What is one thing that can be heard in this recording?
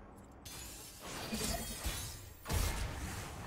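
Magical sparkling effects whoosh and chime.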